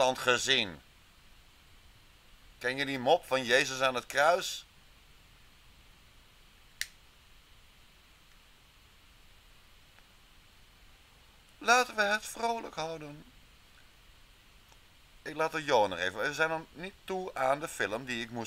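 A young man speaks calmly into a microphone, in bursts with long pauses.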